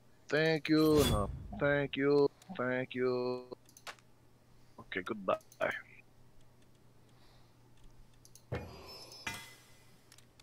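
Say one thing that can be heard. Short game menu clicks sound as items are selected.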